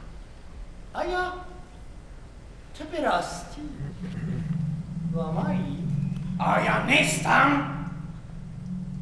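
A man sings loudly in an operatic voice.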